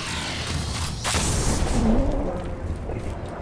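A blast booms and rumbles.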